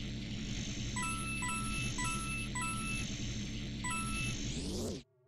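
Coins chime in quick bright notes as they are picked up.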